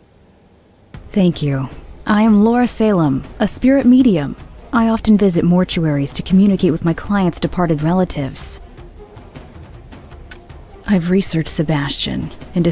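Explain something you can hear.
A middle-aged woman speaks calmly and clearly, close to the microphone.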